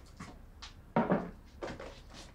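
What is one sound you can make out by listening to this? A plastic basin of water is set down on a table with a dull thud.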